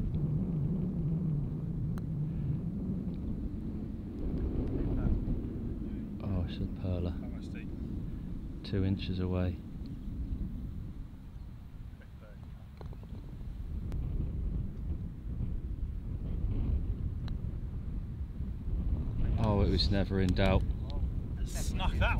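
Wind blows steadily across open ground outdoors.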